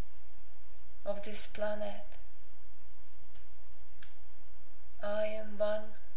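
A young woman sings short phrases close by.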